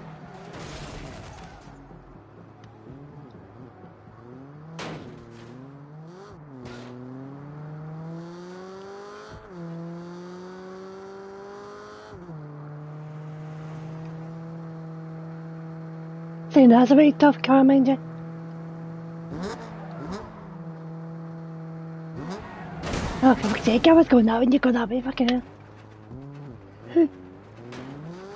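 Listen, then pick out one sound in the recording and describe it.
A car engine revs and roars, rising and falling in pitch as it speeds up.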